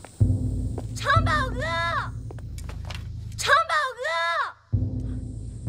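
A young woman shouts.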